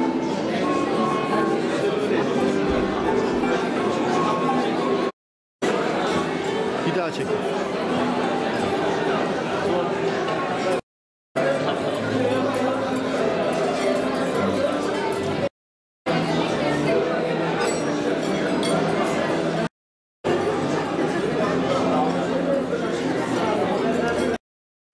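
A crowd of men and women chatter in a large room.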